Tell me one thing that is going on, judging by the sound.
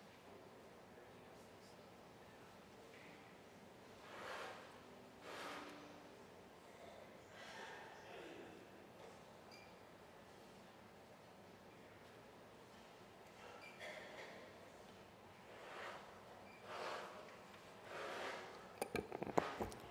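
A congregation murmurs and shifts quietly in a large, echoing hall.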